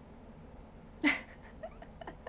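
A young woman laughs briefly close by.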